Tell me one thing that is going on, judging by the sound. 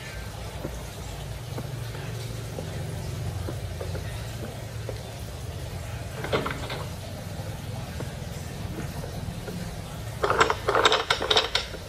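Fingers tap softly on a touchscreen.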